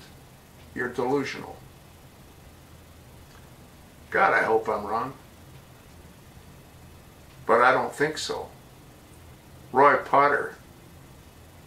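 An elderly man speaks calmly and close up, in short phrases with long pauses.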